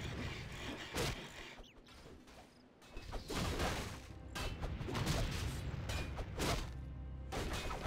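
Swords clang in a fast, noisy fight.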